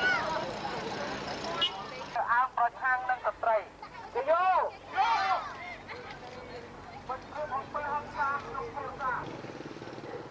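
A crowd of young people chants loudly nearby, outdoors.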